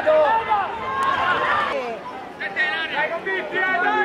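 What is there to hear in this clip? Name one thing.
A small crowd cheers after a goal.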